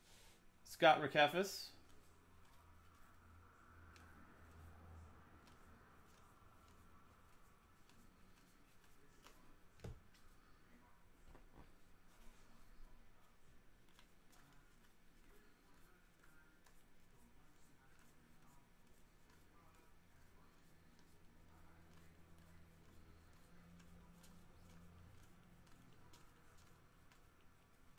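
Trading cards slide and flick against each other in a hand.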